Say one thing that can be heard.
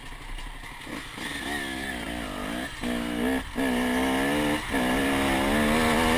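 A motorcycle engine revs up loudly as the bike rides off.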